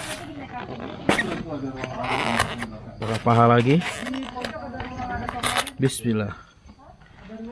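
A foam food container squeaks and creaks as it is handled.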